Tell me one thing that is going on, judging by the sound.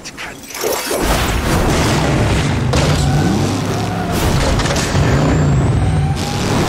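A car engine revs with a deep rumble.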